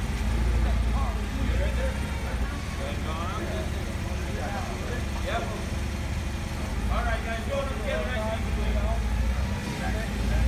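Men talk in the distance, outdoors at night.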